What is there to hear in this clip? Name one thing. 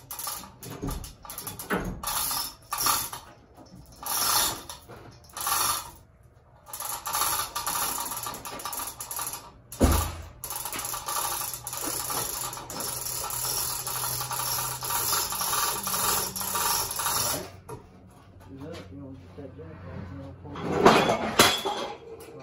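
Metal parts clank and knock.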